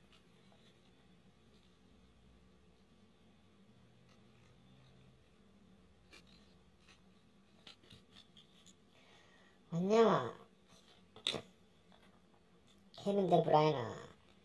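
Trading cards rustle and click softly as hands flip through them.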